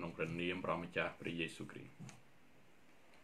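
A man speaks calmly and close to the microphone.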